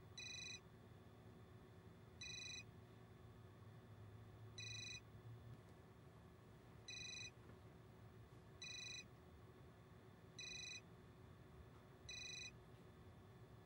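A phone rings in short repeated bursts.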